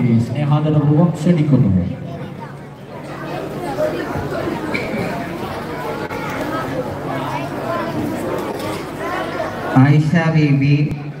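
A crowd of men talk and murmur.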